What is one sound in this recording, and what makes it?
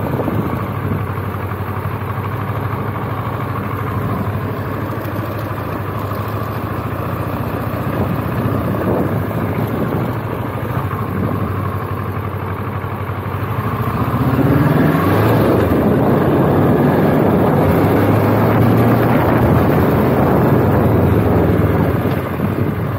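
A motorcycle engine hums close by and grows louder as it speeds up.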